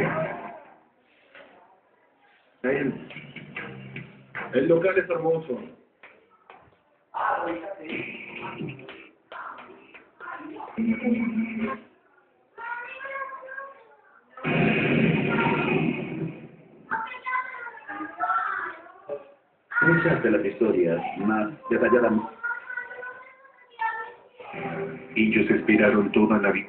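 Short bursts of television sound come through a loudspeaker, cut off each time the channel changes.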